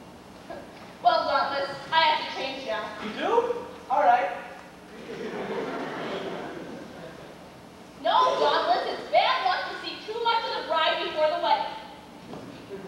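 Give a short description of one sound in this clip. A young woman speaks with animation on a stage, heard from a distance in a hall.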